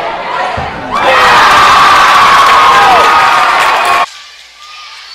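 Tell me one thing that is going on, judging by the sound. A crowd cheers loudly in a large echoing gym.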